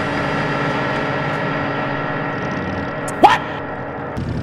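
A car crashes with a loud metal thud.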